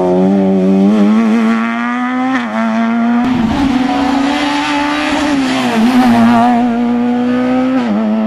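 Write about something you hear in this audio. A rally car engine roars loudly, revving up and down as gears shift.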